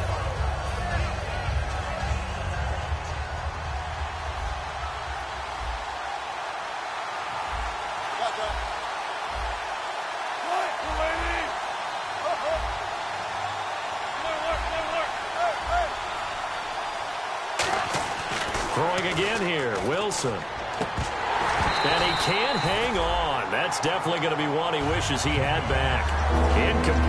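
A large stadium crowd murmurs and roars.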